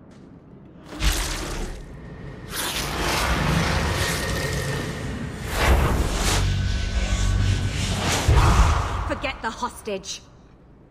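A magic blast roars and crackles.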